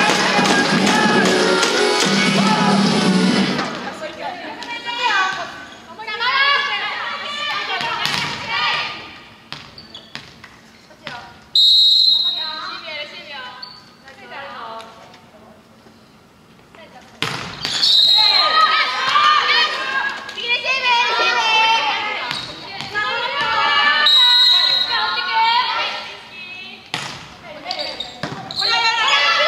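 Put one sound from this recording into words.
Young women shout and call out across a large echoing hall.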